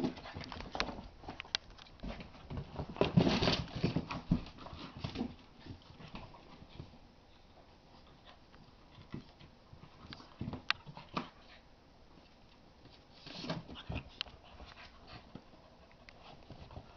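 Dogs' paws scuffle and patter on a hard floor.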